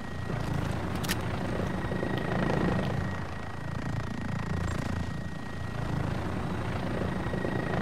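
A helicopter's rotor thumps steadily close by.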